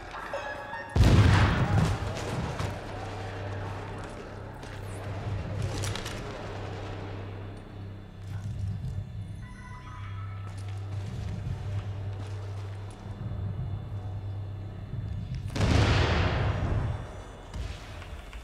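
Loud gunfire bursts out and echoes.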